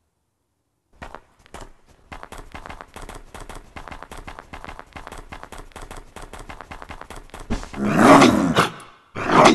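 Paws patter quickly over snow.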